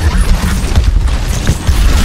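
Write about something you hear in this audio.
A heavy weapon booms with a deep, rumbling blast.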